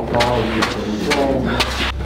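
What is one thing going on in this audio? Footsteps climb stairs.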